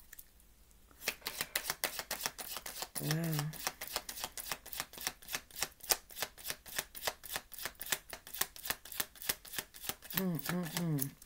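Cards riffle and flick rapidly as they are shuffled.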